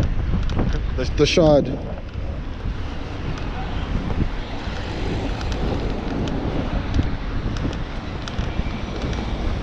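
Wind rushes steadily past a moving bicycle outdoors.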